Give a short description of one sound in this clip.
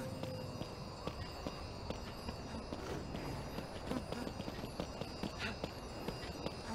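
Quick footsteps patter across rocky ground.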